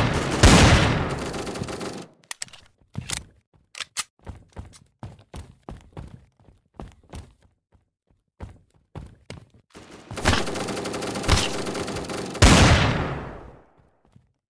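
A pistol fires a loud shot that echoes away.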